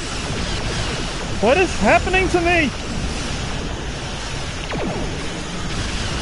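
Laser weapons fire in rapid bursts.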